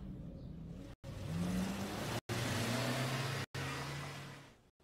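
Cars rush past close by with a loud whoosh.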